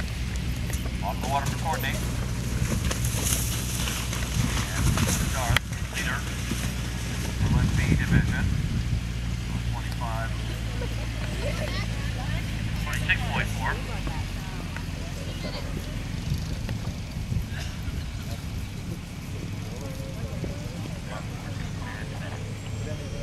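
Women nearby talk and call out excitedly.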